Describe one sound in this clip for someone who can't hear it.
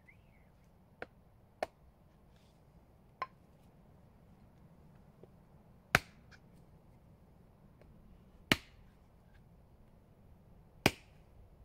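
Wooden blocks knock sharply against each other now and then.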